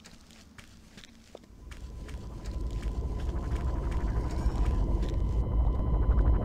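Heavy footsteps thud and clink on the ground.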